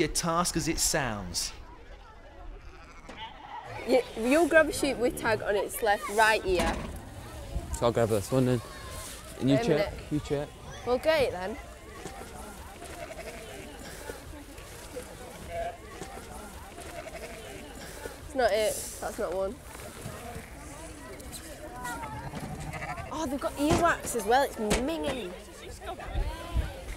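Sheep bleat.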